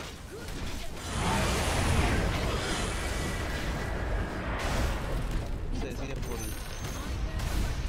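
Spell blasts and explosions crash loudly during a battle.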